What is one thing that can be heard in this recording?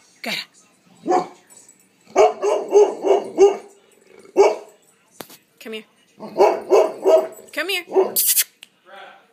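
A dog howls and barks in short bursts nearby.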